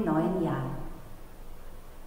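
A woman speaks calmly into a microphone in an echoing room.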